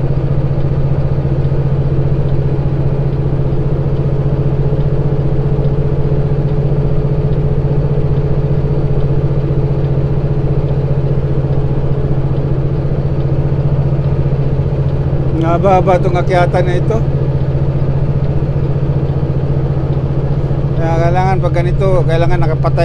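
A vehicle's engine hums steadily with road noise from inside the cab.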